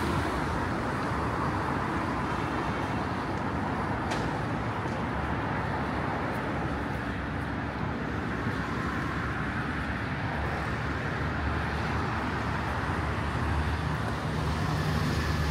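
Footsteps tap on a hard walkway.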